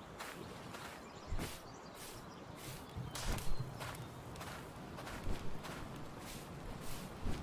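Footsteps of a running mount thud on grass.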